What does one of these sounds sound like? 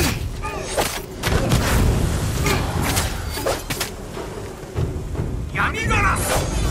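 Swords clash and slash in quick, sharp strikes.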